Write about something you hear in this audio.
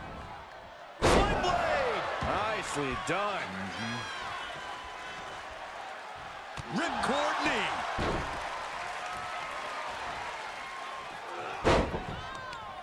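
A body slams down hard onto a wrestling mat with a loud thud.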